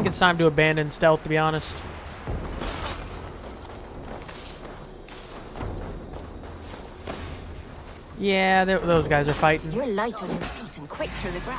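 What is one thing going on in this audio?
Footsteps crunch softly through grass and dirt.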